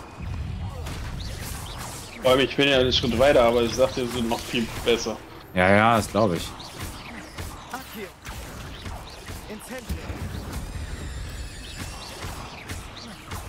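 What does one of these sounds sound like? Magic spells whoosh and burst in short blasts.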